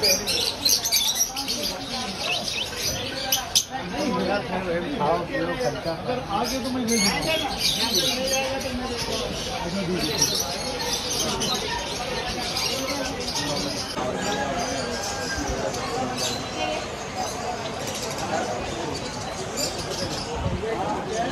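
Small caged birds chirp and twitter busily.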